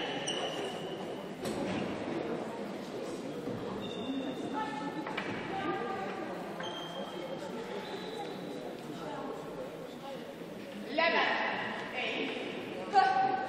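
Spectators murmur throughout a large echoing hall.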